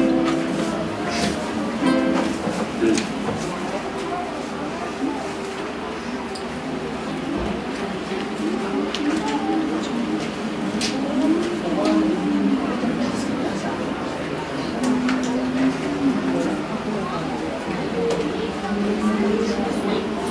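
Acoustic guitars strum along.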